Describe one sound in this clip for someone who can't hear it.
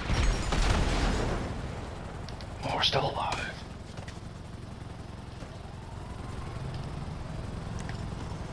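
Fire crackles and roars nearby.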